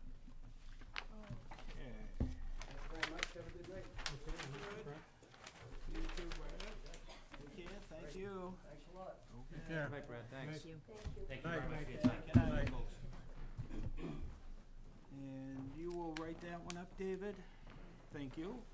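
Men speak calmly, heard through microphones.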